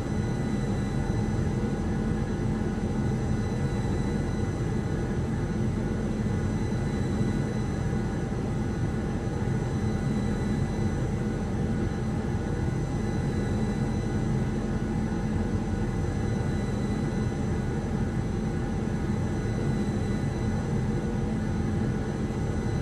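A jet engine roars steadily, heard from inside an airliner's cabin.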